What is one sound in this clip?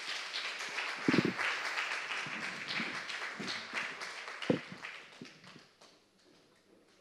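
An audience applauds in a large hall, then the applause fades away.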